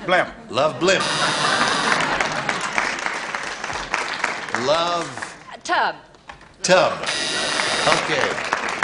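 An audience laughs and applauds loudly.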